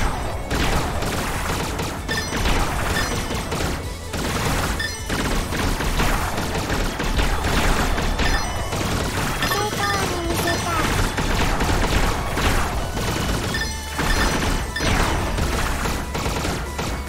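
Game music plays steadily throughout.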